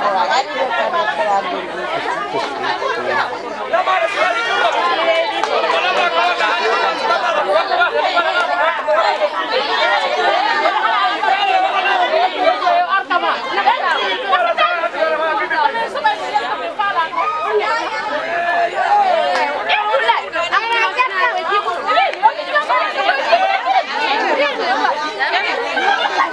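A crowd of women chatter loudly and overlap outdoors.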